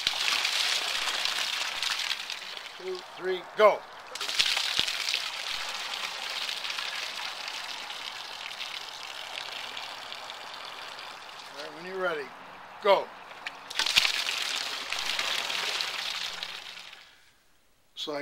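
Water pours and splashes onto grass.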